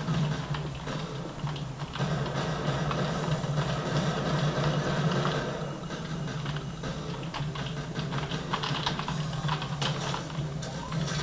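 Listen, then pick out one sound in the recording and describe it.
Gunfire and game sounds play from desk speakers.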